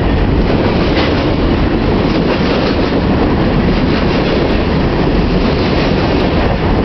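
Train wheels clack and squeal on the rails.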